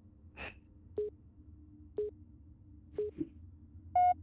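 Short beeps sound once a second in a countdown.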